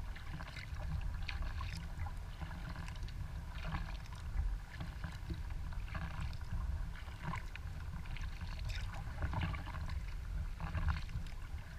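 Water laps and splashes against the hull of a kayak gliding forward.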